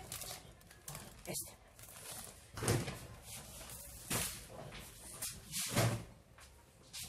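Plastic wrapping crinkles as a package is handled.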